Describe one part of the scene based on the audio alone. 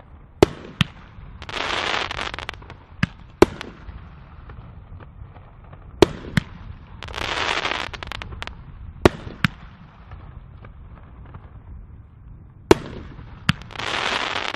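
Aerial firework shells burst with sharp booms.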